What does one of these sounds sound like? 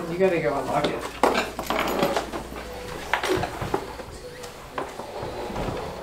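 A woman's clothes scrape on a wooden floor as she crawls.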